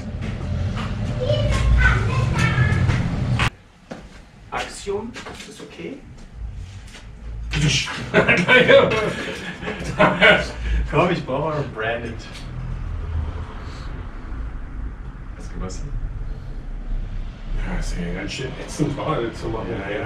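A man talks calmly nearby.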